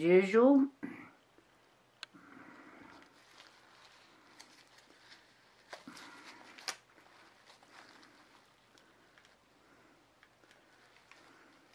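A paper towel rustles softly as it wipes.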